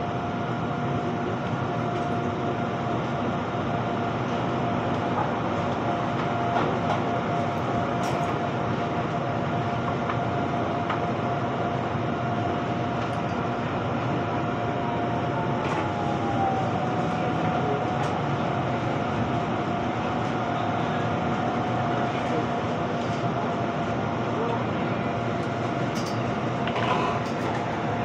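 Train brakes whine as the train slows to a stop.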